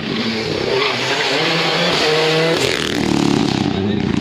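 A rally car engine roars past at high revs, then fades into the distance.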